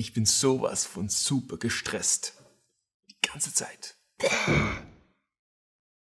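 A young man talks close to a microphone with animation.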